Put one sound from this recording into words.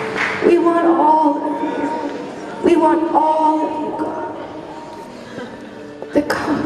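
A singer sings through a microphone.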